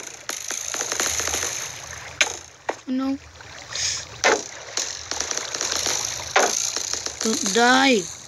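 A boy speaks close to a phone microphone.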